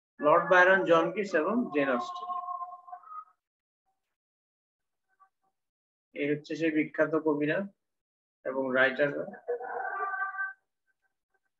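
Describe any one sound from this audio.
A man speaks steadily in short phrases with pauses, heard through an online call.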